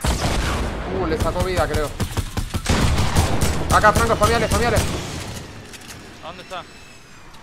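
A young man talks with animation close to a microphone.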